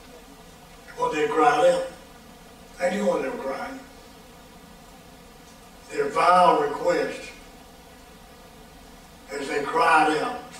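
An elderly man speaks slowly and deliberately through a microphone, with long pauses between phrases.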